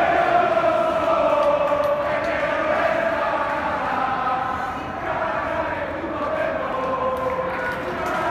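A stadium crowd sings and chants loudly in unison, echoing through the stands.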